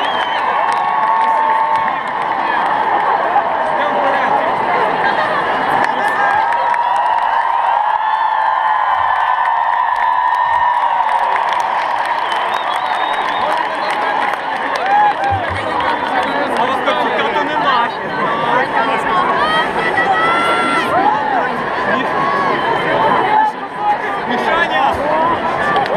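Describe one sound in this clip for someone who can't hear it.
A huge crowd sings and cheers loudly outdoors.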